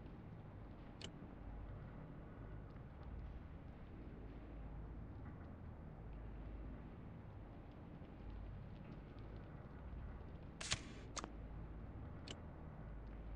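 A game menu gives short clicks as it opens and closes.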